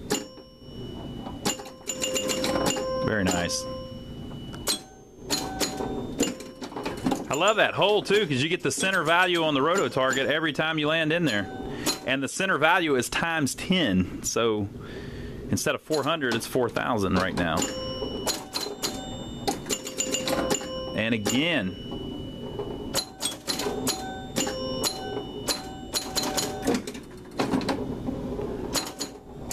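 A pinball machine plays warbling electronic sound effects and chimes.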